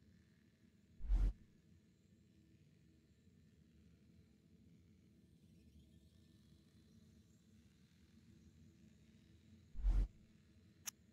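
A soft whoosh sounds as a menu panel switches.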